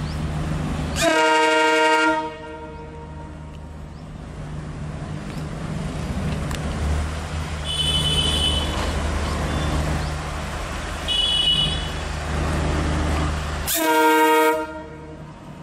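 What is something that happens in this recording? A train horn blares loudly.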